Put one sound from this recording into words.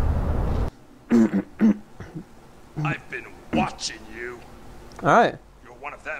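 A man speaks in a low voice.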